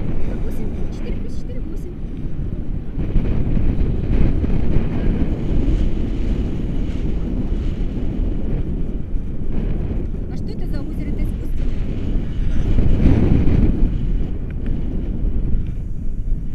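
A woman speaks through the wind close by.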